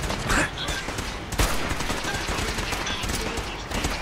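A rifle bolt clicks and clacks as it is reloaded.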